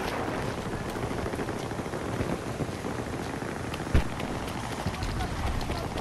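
A tornado roars nearby.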